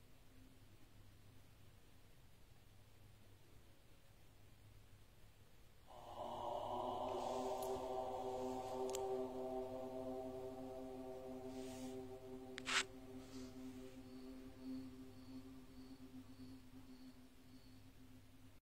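Small waves lap gently against rocks at the shore.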